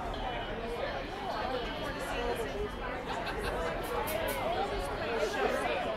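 A live band plays rock music outdoors.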